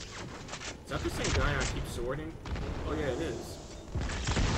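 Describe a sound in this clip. A man talks into a headset microphone.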